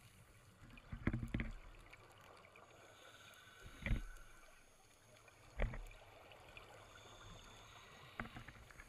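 A diver breathes out through a regulator, sending bubbles gurgling upward underwater.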